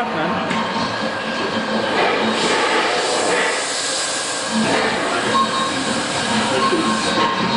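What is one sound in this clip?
A gas torch roars and hisses steadily close by.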